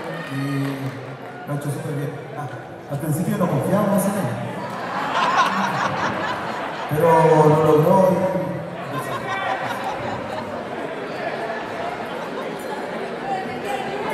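A live band plays loudly through speakers in a large echoing hall.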